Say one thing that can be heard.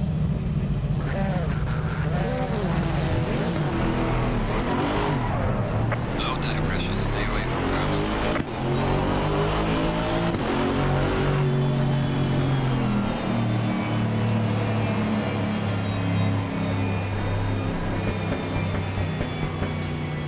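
A race car engine revs hard and climbs in pitch through quick gear changes.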